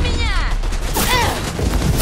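Electric crackling zaps loudly.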